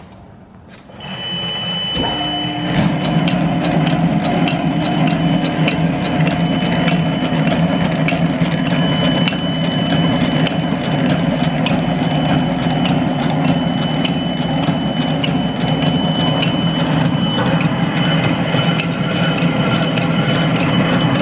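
A machine starts up and runs with a steady whirring hum and rapid ticking.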